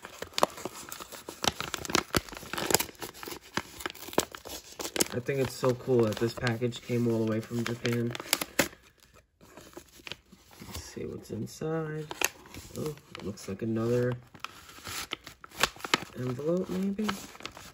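A paper envelope crinkles and rustles up close.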